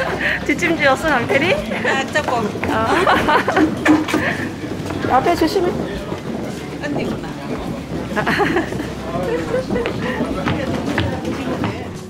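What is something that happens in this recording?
Young girls chatter and talk close by.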